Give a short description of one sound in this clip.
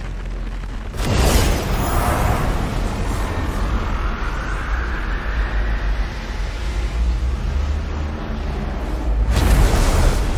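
A powerful energy beam roars with a rising whoosh.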